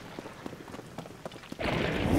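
A ghostly whoosh swells up loudly.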